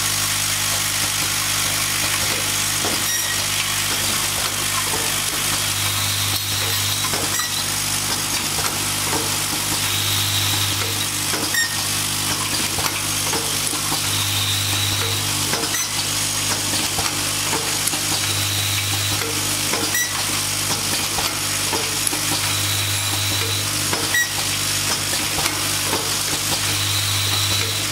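A machine clicks and clatters in a regular rhythm.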